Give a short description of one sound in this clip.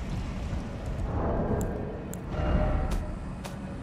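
Game menu sounds click softly.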